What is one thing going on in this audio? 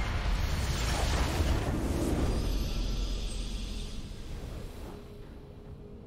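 A bright, triumphant chime rings out.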